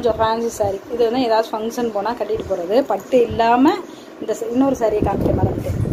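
A woman speaks with animation close by.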